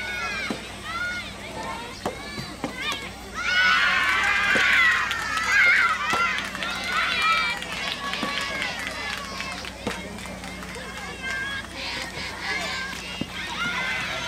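Tennis balls are struck with rackets, sharp pops outdoors.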